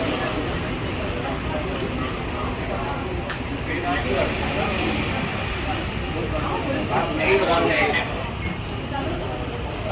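A crowd of men and women murmurs and chatters nearby.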